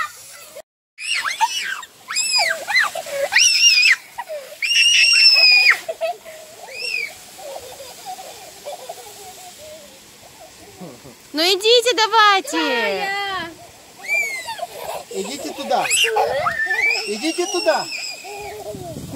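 A garden hose sprays water with a soft hiss.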